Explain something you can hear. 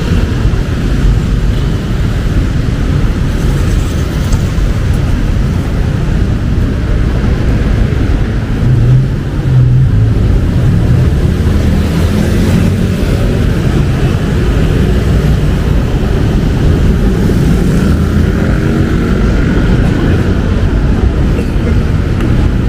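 Steady city traffic rumbles nearby outdoors.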